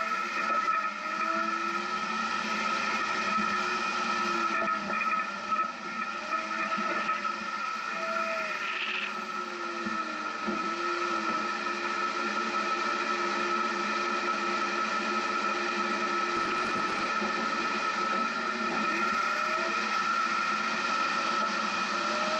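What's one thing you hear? An off-road vehicle's engine labours and revs up and down while climbing.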